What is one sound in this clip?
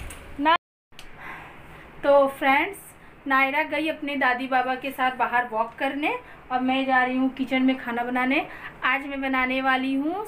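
A woman talks close to the microphone with animation.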